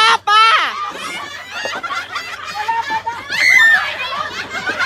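A woman shrieks with laughter.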